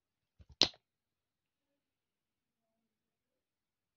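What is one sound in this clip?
A tube of cream squelches as it is squeezed.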